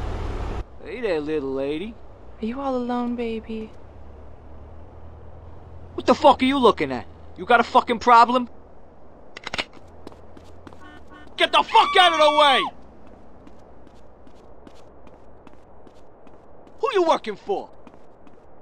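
A man speaks harshly and with annoyance.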